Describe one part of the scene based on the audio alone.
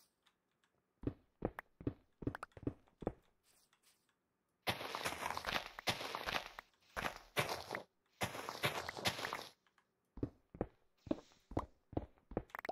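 A pickaxe chips and breaks stone blocks with rapid crunching knocks.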